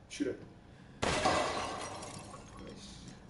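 A ceramic vase smashes and shatters into pieces.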